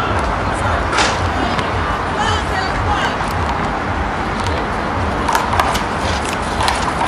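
A rubber ball smacks against a wall and bounces off the court.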